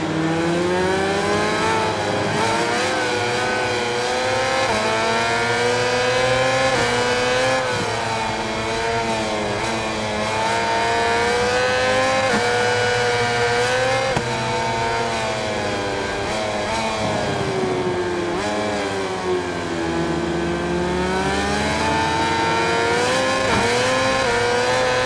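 A motorcycle engine whines loudly, rising and falling in pitch as it revs up and shifts gears.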